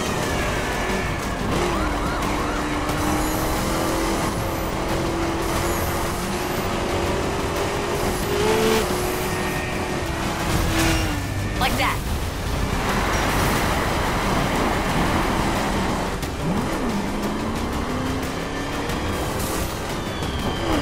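Tyres rumble and skid over rough dirt.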